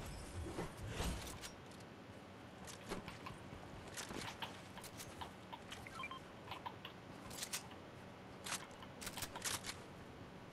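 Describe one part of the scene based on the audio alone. Footsteps patter quickly.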